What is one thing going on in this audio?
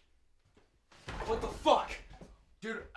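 A young man sneezes into a towel.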